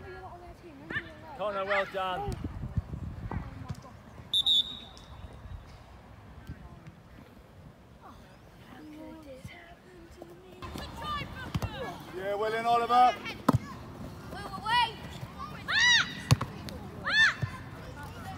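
Children shout to each other outdoors on an open field.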